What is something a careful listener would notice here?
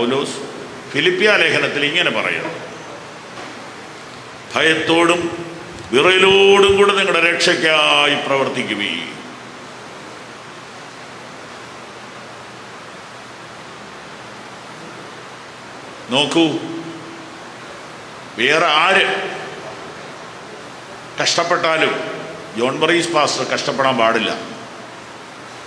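A man speaks slowly and solemnly into a microphone, heard through a loudspeaker in an echoing room.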